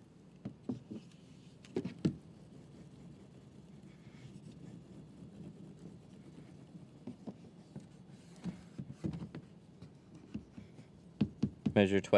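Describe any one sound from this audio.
A cloth wipes and squeaks against a glass window.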